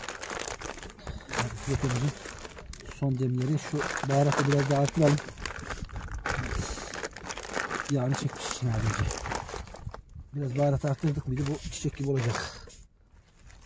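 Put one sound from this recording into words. Plastic packaging crinkles as hands handle it.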